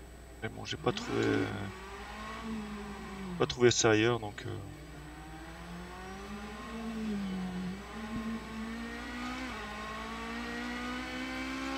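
A racing car engine revs and climbs in pitch as the car speeds up.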